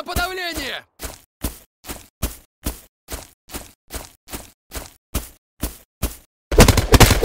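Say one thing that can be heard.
Footsteps tap at an even walking pace on a hard floor.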